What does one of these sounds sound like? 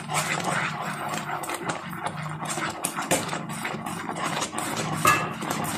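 A thick mixture bubbles and sizzles in a pan.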